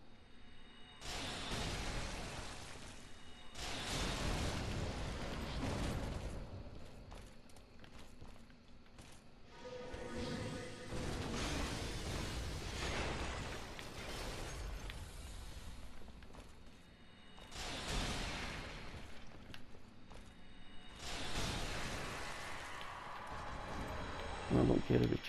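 Magical blasts burst with loud rushing roars, again and again.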